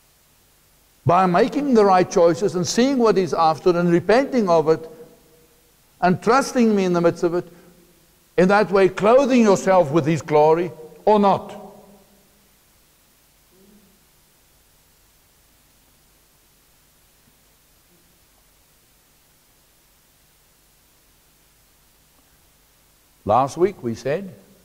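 A middle-aged man speaks with animation through a lapel microphone.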